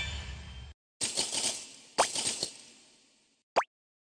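Game coins jingle as they are collected.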